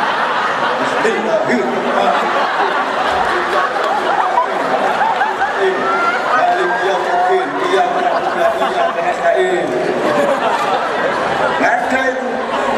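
An audience murmurs and chatters.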